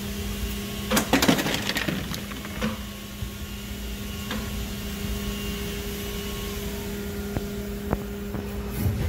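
A machine clunks as it opens and closes.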